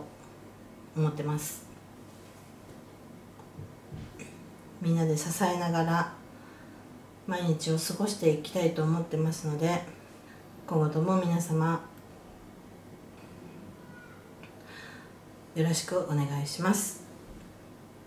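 A woman speaks calmly and haltingly, close to the microphone.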